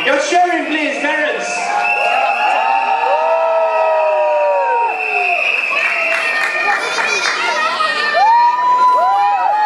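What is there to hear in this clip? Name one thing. Young children chatter and call out in high voices in a large echoing hall.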